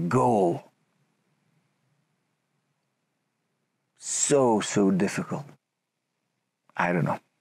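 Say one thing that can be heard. A man speaks close by in short, expressive bursts.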